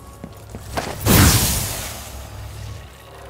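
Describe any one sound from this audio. A sudden magical burst whooshes loudly.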